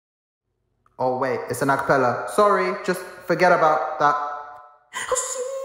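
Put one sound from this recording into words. A man sings into a microphone, close up and expressive.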